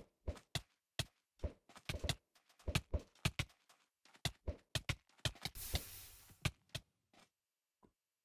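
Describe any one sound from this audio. Game sword hits thump and click in quick bursts.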